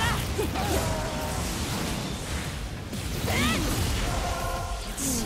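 Steam hisses loudly.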